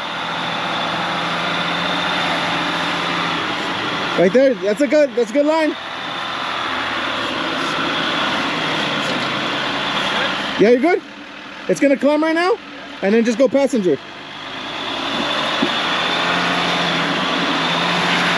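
An off-road vehicle's engine rumbles and strains as it crawls over rocks.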